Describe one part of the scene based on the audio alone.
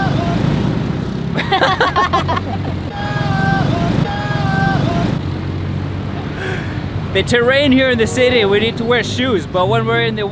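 Traffic rumbles by on a busy road.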